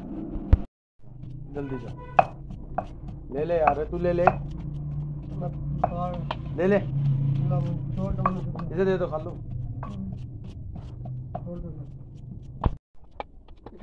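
A wooden pestle pounds in a stone mortar.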